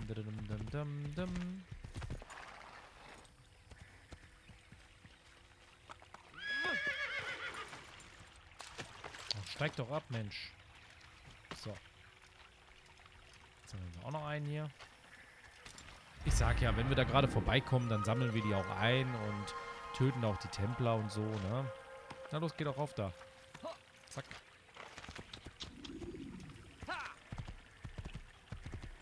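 Horse hooves thud on the ground at a gallop.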